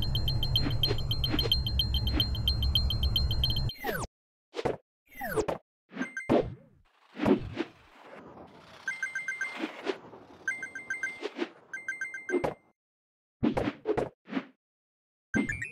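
Game coins chime quickly as they are picked up.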